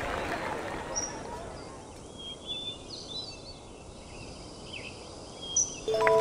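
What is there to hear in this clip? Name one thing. A golf ball rolls softly across grass.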